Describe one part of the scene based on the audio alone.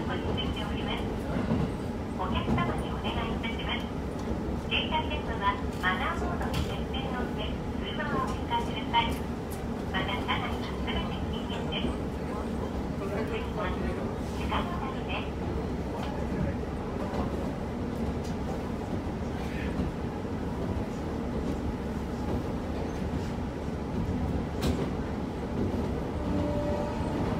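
A car drives along steadily with a low engine rumble and road noise.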